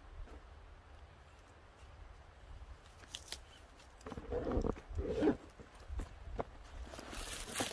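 A cord rustles and creaks as it is pulled tight.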